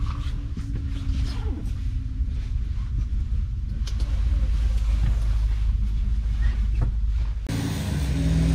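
A train rumbles steadily as it rolls along.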